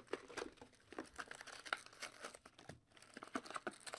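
Cardboard flaps tear open.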